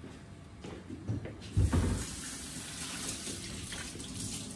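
Dishes clatter and clink in a sink.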